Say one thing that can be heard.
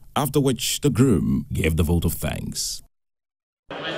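A young man speaks with animation through a microphone, heard over loudspeakers.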